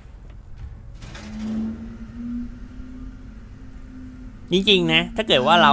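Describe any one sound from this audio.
An elevator hums as it moves.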